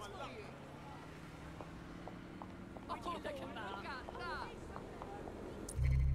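Footsteps tread on pavement.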